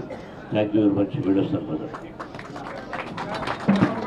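A man speaks into microphones with animation.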